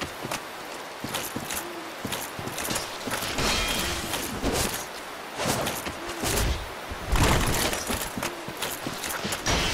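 Armoured footsteps thud and clank quickly on soft ground.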